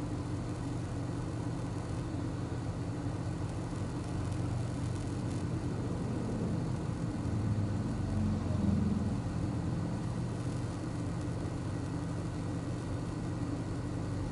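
A car engine idles steadily, heard from inside the car.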